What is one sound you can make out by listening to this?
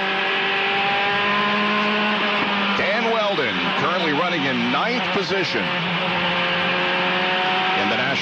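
A racing car engine screams at high revs, steady and close.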